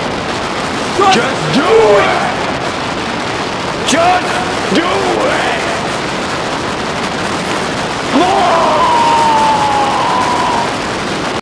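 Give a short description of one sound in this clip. A young man shouts loudly close by.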